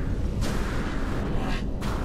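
A jetpack hisses in short bursts.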